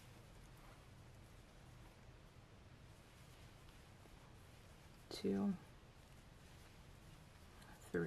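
A crochet hook softly rustles and pulls through yarn.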